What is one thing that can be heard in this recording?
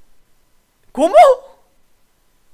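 A young man cries out loudly.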